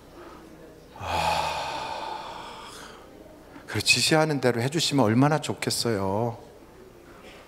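A middle-aged man speaks with feeling into a microphone, heard through loudspeakers in a large echoing hall.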